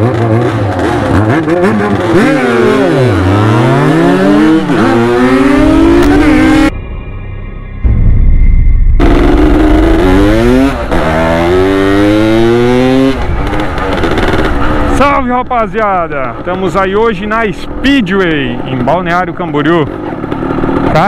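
A motorcycle engine revs up and down close by.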